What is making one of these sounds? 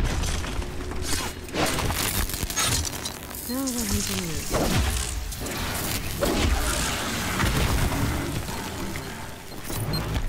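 A spear strikes a metal machine creature with sharp clanks.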